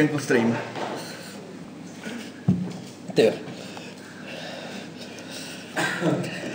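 A young man laughs and talks close by.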